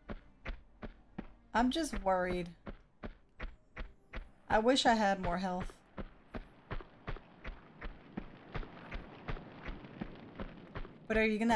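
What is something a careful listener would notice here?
Quick footsteps thud steadily on hard ground.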